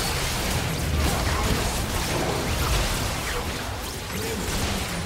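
Spell blasts and explosions crackle and boom in a chaotic video game battle.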